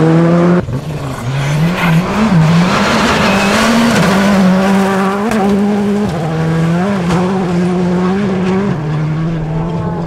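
Gravel sprays and crackles under a rally car's tyres.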